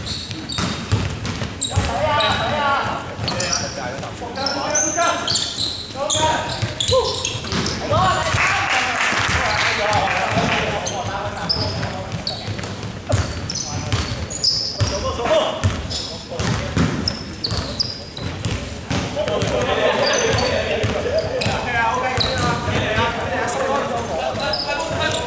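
Young men shout and call out to each other across the echoing hall.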